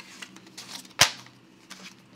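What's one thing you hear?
A binder snap clicks shut.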